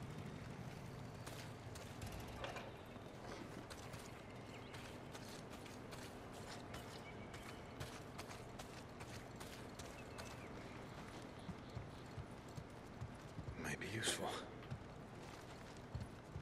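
Footsteps crunch on grass and gravel.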